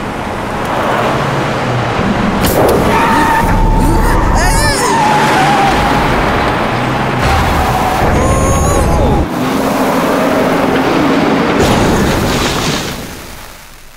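A truck engine roars loudly.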